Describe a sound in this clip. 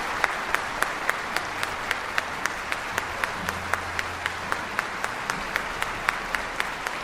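An orchestra plays a lively tune.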